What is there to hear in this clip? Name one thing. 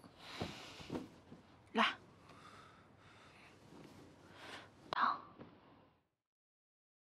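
A young woman speaks softly and closely.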